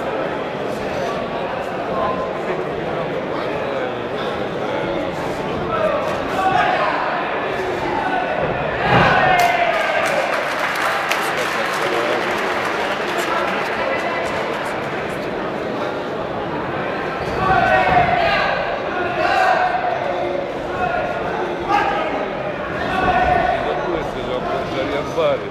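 A crowd in a large echoing hall shouts and cheers.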